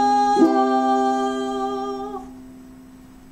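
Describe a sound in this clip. A ukulele chord rings out and slowly fades.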